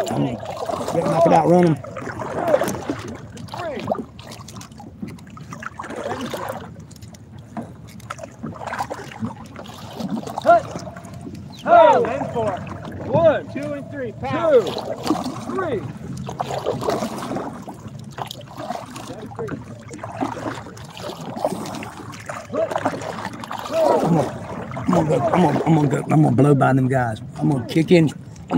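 Water laps softly against a small boat's hull.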